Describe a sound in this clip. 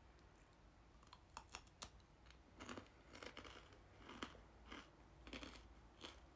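A young woman chews a crunchy snack close to a microphone.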